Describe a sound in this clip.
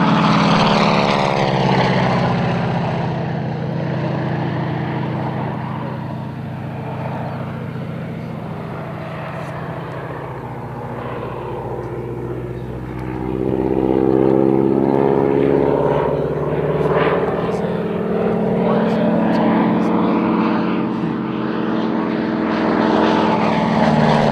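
A small propeller plane's engine drones overhead, its pitch rising and falling as it swoops past.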